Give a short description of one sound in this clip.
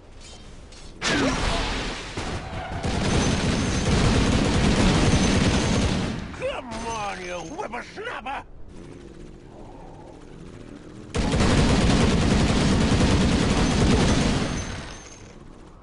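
Loud game battle noises clash and roar.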